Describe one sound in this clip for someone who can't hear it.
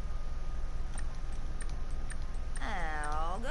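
Soft menu clicks tick several times.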